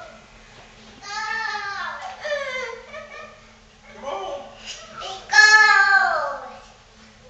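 A young child talks excitedly nearby in a high voice.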